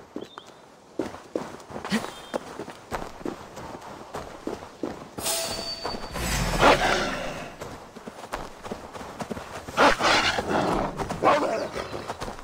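Footsteps tread steadily over grass and dry ground.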